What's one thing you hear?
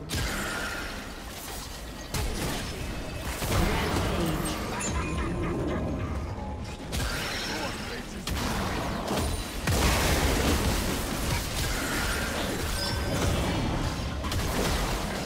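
Magic spells whoosh and crackle in a fast video game battle.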